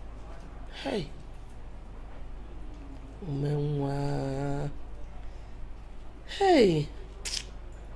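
A middle-aged woman sobs and wails close by.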